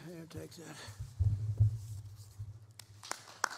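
Stiff paper rustles and bumps close to a microphone.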